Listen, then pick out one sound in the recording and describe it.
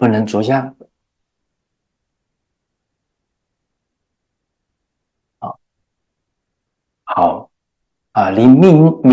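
A middle-aged man speaks with emphasis into a microphone, pausing between phrases.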